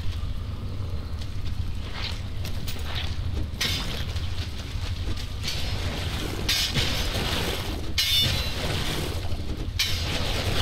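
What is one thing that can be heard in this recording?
A weapon swings and strikes a pile of scrap metal with sharp hits.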